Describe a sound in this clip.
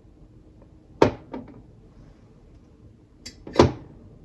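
A spoon taps against glass.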